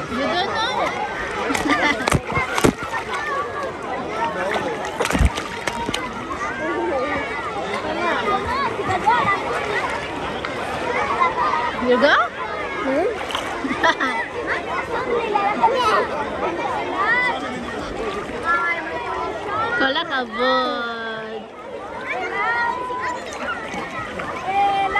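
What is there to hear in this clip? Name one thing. Water splashes as a young child paddles in a swimming pool.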